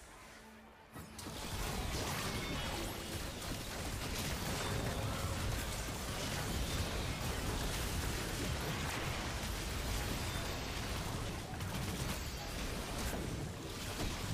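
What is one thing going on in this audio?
Game spells and blows clash in a busy battle.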